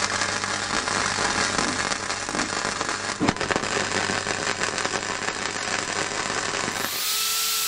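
A welding arc crackles and sizzles loudly and steadily.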